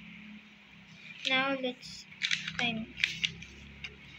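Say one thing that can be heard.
Paper rustles as it is shifted.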